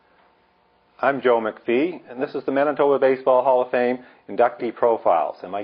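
An elderly man speaks calmly through a clip-on microphone, close by.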